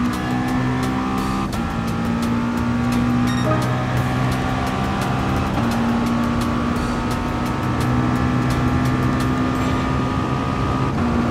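A racing car engine roars at high revs, rising in pitch and dropping briefly with each gear change.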